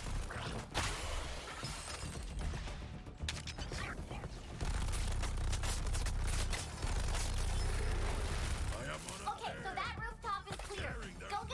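Gunfire and explosions from a game boom and crackle rapidly.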